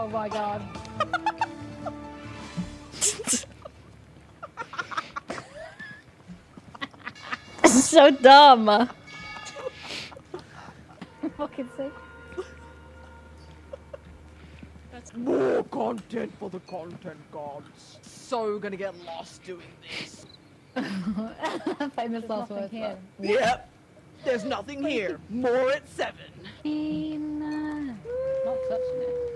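A young man talks and laughs over a microphone.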